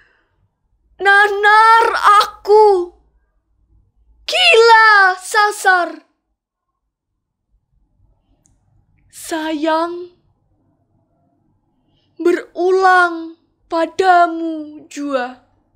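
A young woman recites with strong emotion, close by, with pauses between lines.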